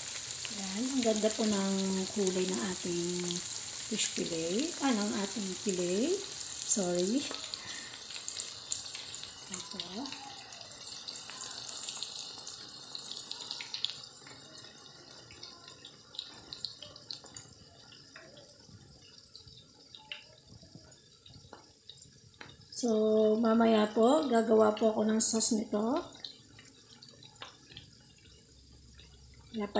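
Hot oil sizzles and crackles loudly in a frying pan, then quiets to a soft popping.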